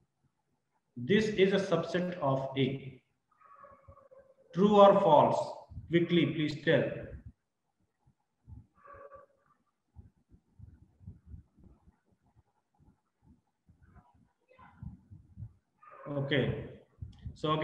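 A man talks calmly and clearly into a close microphone, in short bursts with pauses.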